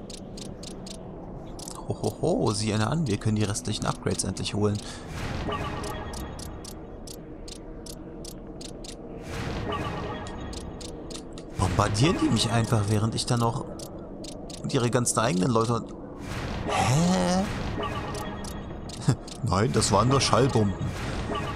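Soft menu clicks tick now and then.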